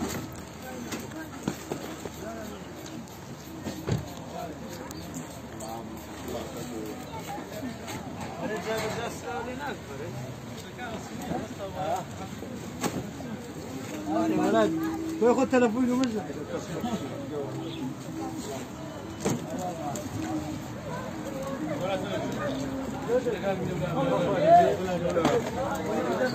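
A crowd of men chatter nearby outdoors at a busy market.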